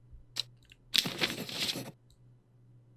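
A sheet of paper rustles briefly.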